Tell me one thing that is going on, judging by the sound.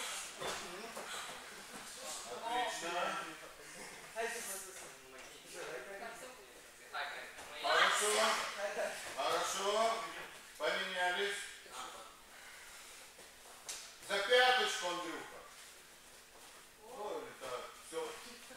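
A man speaks calmly nearby, explaining, in an echoing hall.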